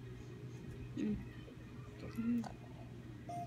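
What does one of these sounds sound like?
A young child makes short vocal sounds close by.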